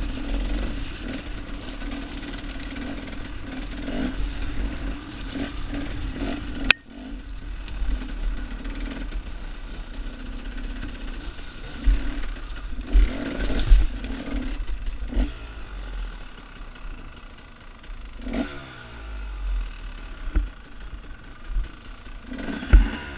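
A dirt bike engine runs up close, revving and dropping as it climbs.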